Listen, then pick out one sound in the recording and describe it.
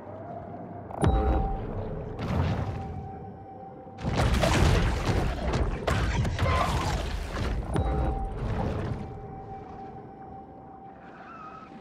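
Water rushes and churns as a shark swims fast underwater.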